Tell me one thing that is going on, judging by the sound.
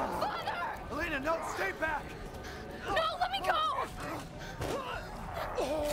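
A young woman screams.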